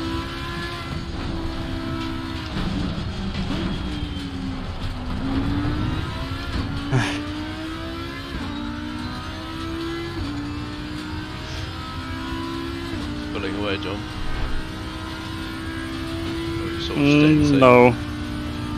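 A race car engine roars, rising in pitch through the gears and dropping on each shift.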